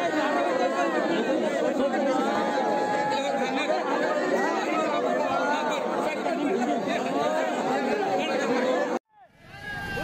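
A crowd of men and women cry and wail loudly up close.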